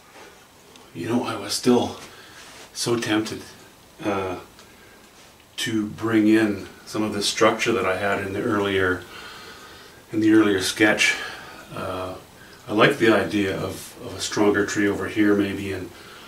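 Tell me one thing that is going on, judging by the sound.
An elderly man talks calmly and clearly into a close microphone.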